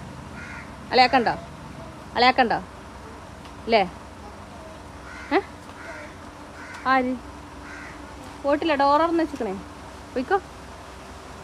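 A young girl calls out in short, high bursts nearby.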